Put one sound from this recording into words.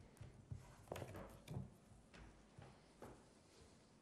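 Papers rustle as a man gathers them up.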